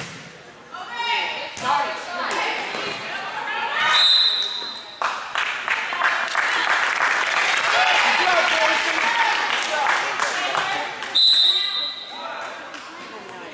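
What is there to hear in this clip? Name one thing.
A crowd cheers and shouts loudly in an echoing gym.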